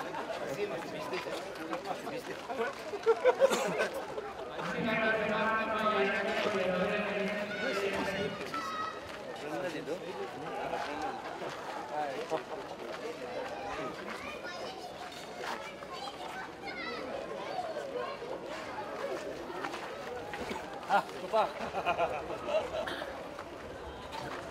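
Men talk and chatter nearby in an outdoor crowd.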